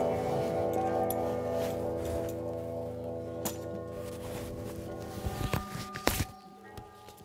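A bowed string instrument plays a droning melody.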